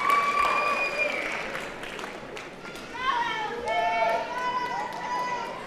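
A crowd of young people cheers and whoops loudly in a large hall.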